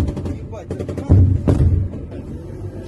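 A heavy explosion booms nearby.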